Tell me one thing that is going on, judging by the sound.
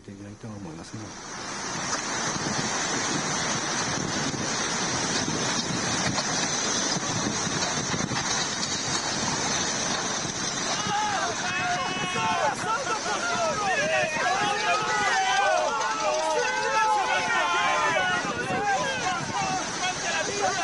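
Floodwater rushes and roars steadily.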